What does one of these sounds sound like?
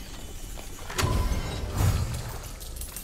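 A magical whoosh rings out.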